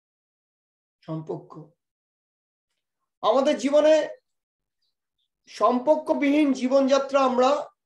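A middle-aged man speaks with animation, close to a microphone, in short bursts with pauses.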